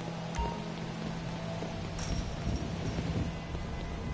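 Footsteps run across a hard court.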